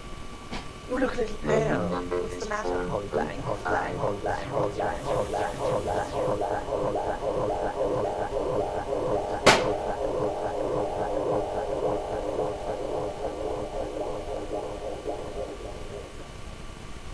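A saxophone plays a lively, bouncy tune.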